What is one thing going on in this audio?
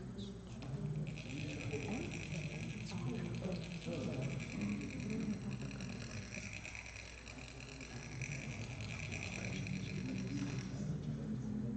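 A metal funnel rasps steadily as it is scraped to pour fine sand.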